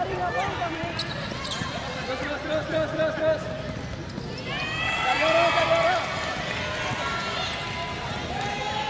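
A basketball bounces on the court with hollow thuds.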